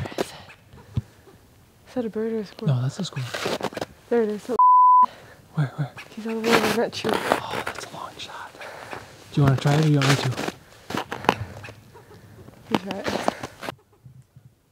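A young woman talks with animation close by outdoors.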